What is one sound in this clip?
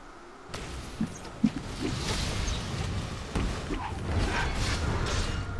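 Game characters strike with sharp hits.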